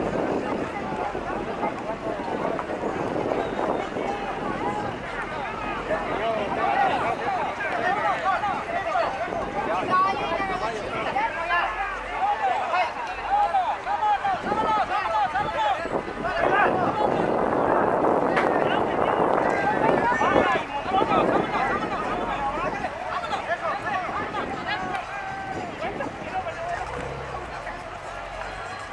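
A crowd of men and women talk and call out outdoors.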